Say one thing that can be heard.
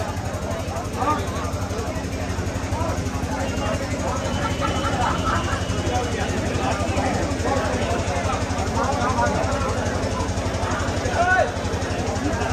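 Men and women in a crowd shout and cheer now and then.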